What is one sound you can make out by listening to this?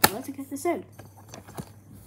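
A button clicks on a player.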